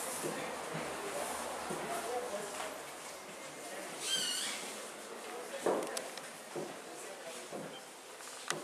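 Several adult visitors murmur and chat quietly in an echoing room.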